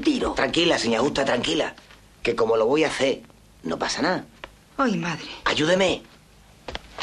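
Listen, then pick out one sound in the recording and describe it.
A middle-aged man speaks urgently up close.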